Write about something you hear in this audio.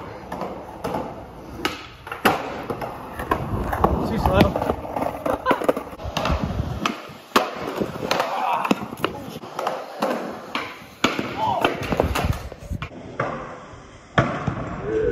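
Skateboard wheels roll on concrete.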